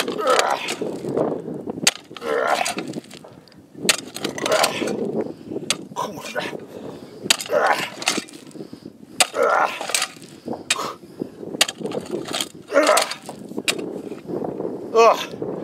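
A post-hole digger thuds and scrapes into dry gravelly soil.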